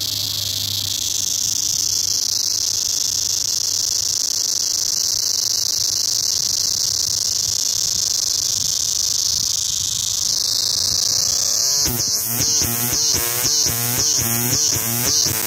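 A cicada sings with a loud, shrill, steady buzz close by, which turns into fast rhythmic pulses near the end.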